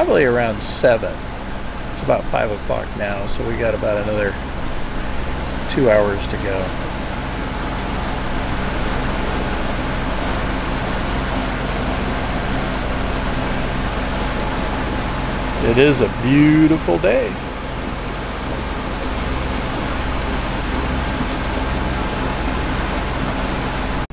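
Wind blows across the open water.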